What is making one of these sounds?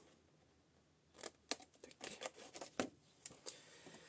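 Scissors snip through card.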